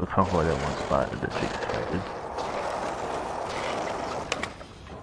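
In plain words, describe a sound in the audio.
Skateboard wheels roll over smooth concrete.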